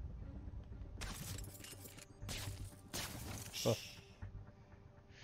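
Quick whooshes and impact hits sound during a brief scuffle.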